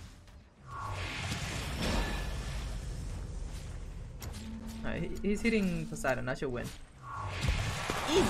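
A burst of magic whooshes and crackles.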